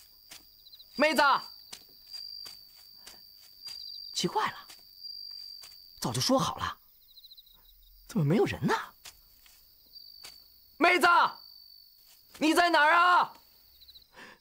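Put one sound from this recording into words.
A young man calls out loudly and anxiously in short bursts.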